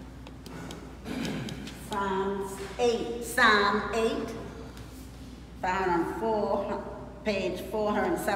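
An elderly woman reads aloud slowly, her voice muffled by a mask.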